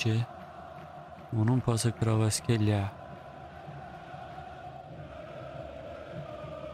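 A large stadium crowd murmurs steadily in the distance.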